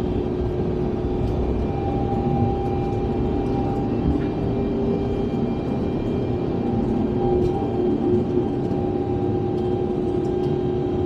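Aircraft wheels rumble over the runway.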